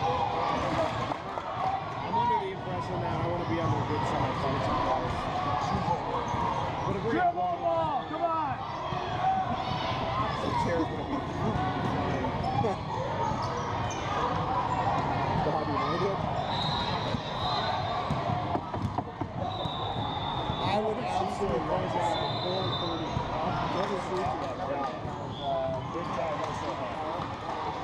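A basketball thumps as players dribble it on the court.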